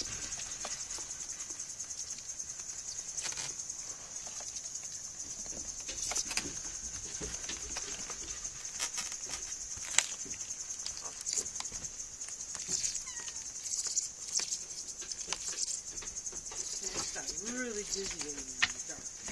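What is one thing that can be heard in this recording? Kittens scamper and patter on a floor.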